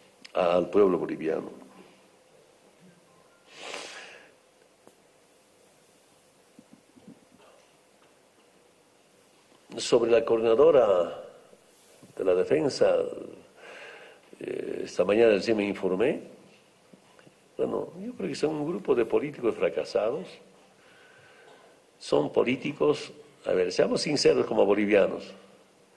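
A middle-aged man speaks firmly into a microphone, with pauses between phrases.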